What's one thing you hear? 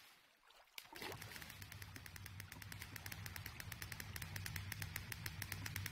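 Water bubbles and swirls underwater.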